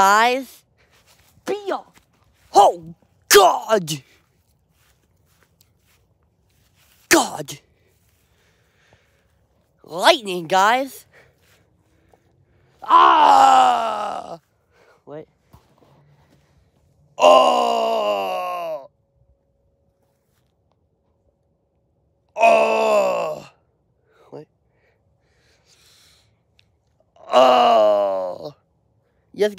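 A young man shouts and sings loudly close to the microphone in short bursts.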